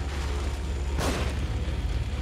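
A pistol fires a single loud shot.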